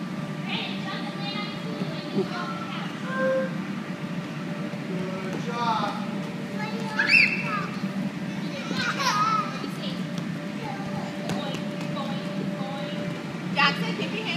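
Small feet thump softly on an inflatable mat.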